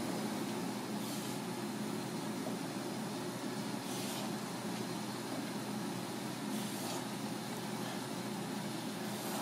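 A knife cuts through fish on a board.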